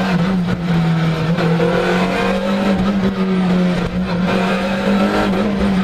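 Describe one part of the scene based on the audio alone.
A four-cylinder rally car engine roars at high revs, heard from inside the cabin.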